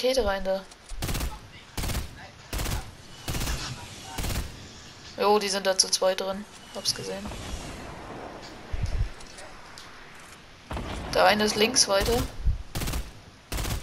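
Shotgun blasts ring out one after another.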